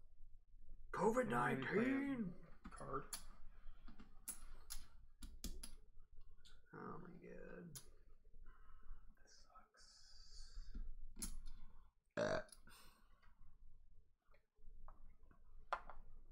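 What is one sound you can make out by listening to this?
Game pieces click on a board.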